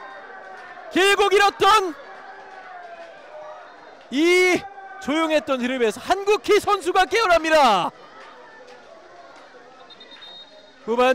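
Young women shout and cheer with excitement nearby.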